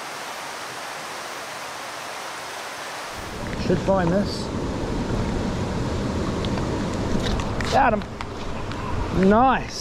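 A river rushes and splashes over rocks nearby.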